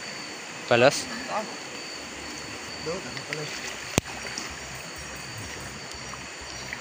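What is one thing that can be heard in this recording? Water splashes as a person crawls through it.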